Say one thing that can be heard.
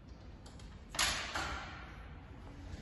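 A heavy glass door thumps and rattles as it is pushed open.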